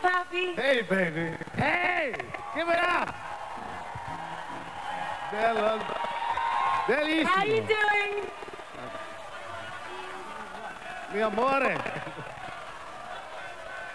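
A large crowd cheers in the background.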